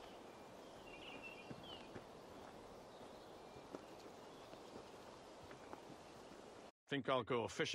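A horse's hooves thud slowly on a dirt path.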